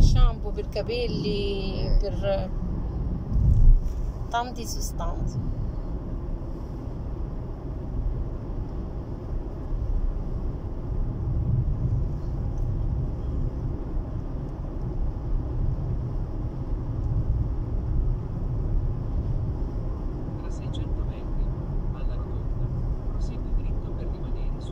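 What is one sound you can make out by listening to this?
A car engine rumbles low and steady from inside the cabin.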